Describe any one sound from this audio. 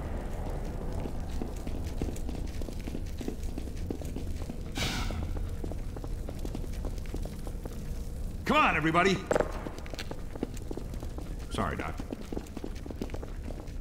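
Footsteps shuffle slowly on a concrete floor.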